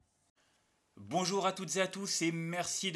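A man speaks calmly and close to a microphone, as if on an online call.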